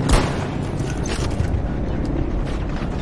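Gunfire cracks in the distance.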